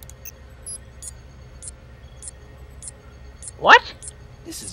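Short electronic blips tick at an even pace.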